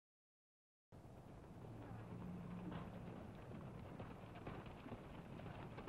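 Horses gallop over dry ground.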